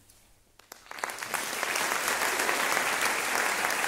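An audience claps loudly in an echoing hall.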